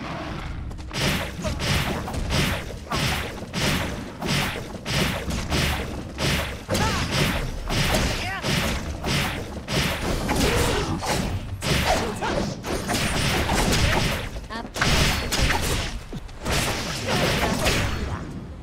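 Video game combat effects clash and crackle in a fight.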